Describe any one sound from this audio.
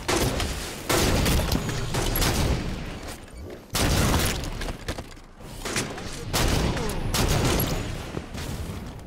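Heavy rifle shots boom one after another, each with a rumbling tail.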